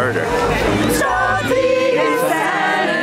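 A group of women sing together outdoors.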